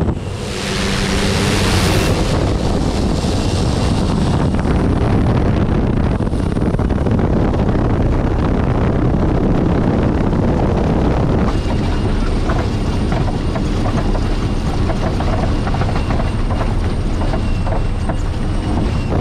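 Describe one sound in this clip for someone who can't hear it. A small propeller plane's engine roars loudly as it speeds along the ground.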